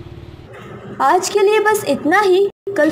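A young woman reads out calmly into a microphone.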